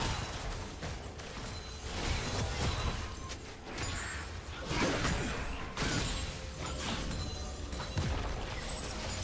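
Magic blasts and sword hits clash in a fast fight.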